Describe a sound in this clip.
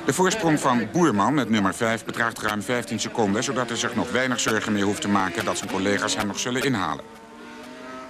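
Racing motorcycle engines scream at high revs, rising and falling as they shift gears.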